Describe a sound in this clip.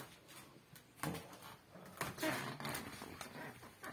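A small toy rattles and skids across a hard floor.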